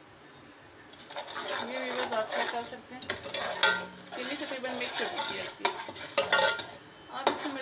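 A metal spoon scrapes and stirs inside a metal pot.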